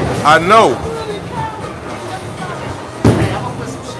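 A bowling ball rolls down a lane.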